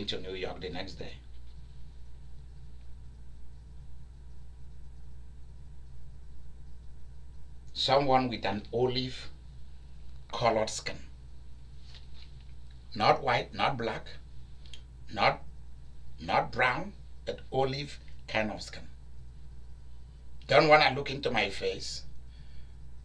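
A man speaks calmly in pauses, close by.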